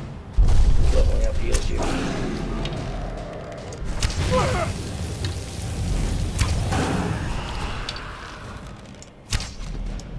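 A dragon roars loudly.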